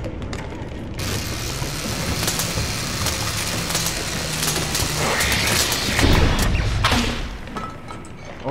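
Machinery hums and crackles with electricity.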